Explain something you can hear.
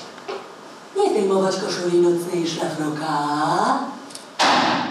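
A young woman speaks with emotion, in a melodic, half-sung voice.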